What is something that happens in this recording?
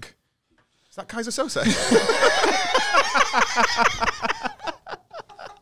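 Two men laugh loudly together.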